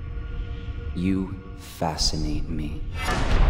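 A man speaks in a low, grave voice.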